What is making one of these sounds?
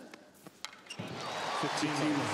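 A large crowd cheers and applauds, growing louder.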